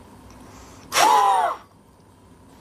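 A man blows out hard in one forceful breath.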